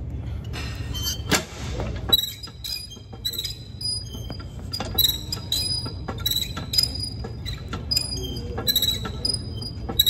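A weight machine's metal plates clank and clink in a steady rhythm.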